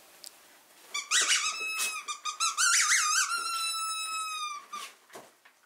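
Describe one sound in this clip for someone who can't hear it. A dog whines in a high voice.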